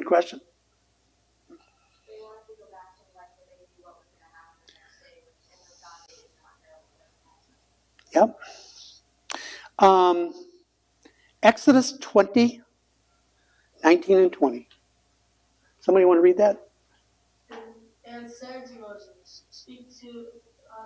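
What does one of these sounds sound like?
An older man reads aloud calmly.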